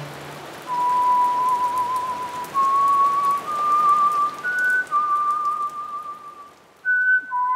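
Rain falls steadily and gradually fades away.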